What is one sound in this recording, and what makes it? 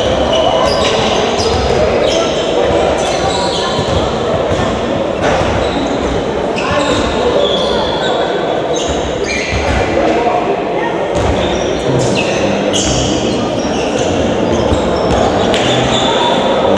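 Many young men and boys chatter and call out in a large echoing hall.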